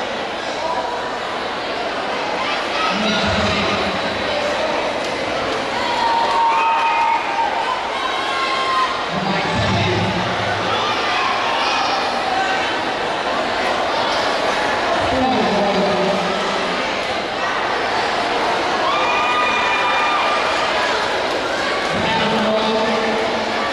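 Music with a beat plays loudly through loudspeakers in a large echoing hall.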